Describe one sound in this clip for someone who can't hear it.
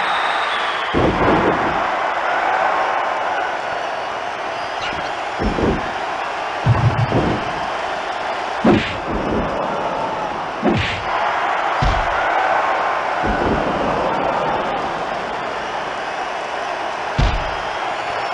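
Heavy thuds of bodies hitting a mat sound now and then.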